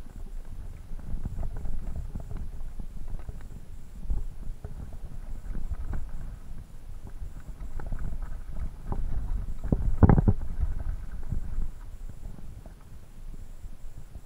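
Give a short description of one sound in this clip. A mountain bike rattles and clatters over a rocky gravel trail on a descent.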